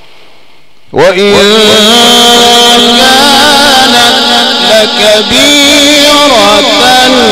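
A man chants loudly in a long, drawn-out voice through a microphone.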